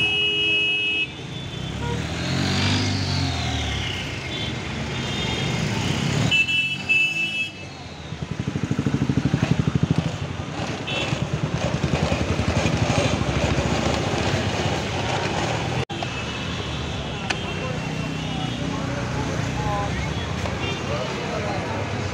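People chatter nearby in a busy street.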